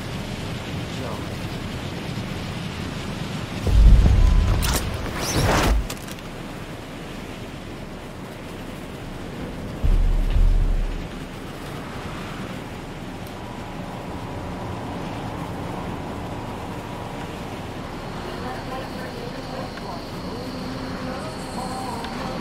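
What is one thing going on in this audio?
Wind rushes steadily past during a fall through the air.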